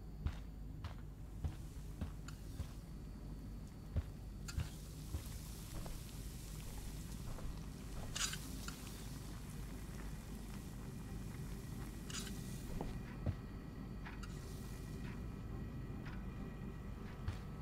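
Footsteps tap softly on a floor indoors.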